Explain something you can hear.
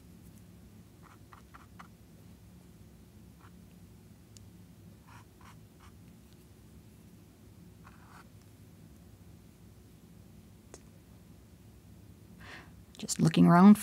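A paintbrush dabs and scrapes softly.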